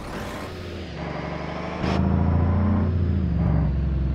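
A truck's diesel engine rumbles and revs.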